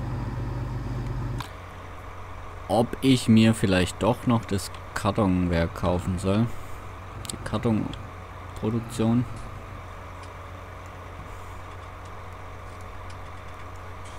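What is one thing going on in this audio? A tractor engine hums steadily at idle.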